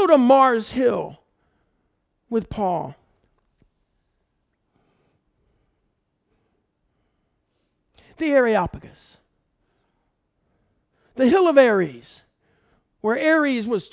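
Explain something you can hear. A middle-aged man speaks calmly and thoughtfully into a microphone, with long pauses.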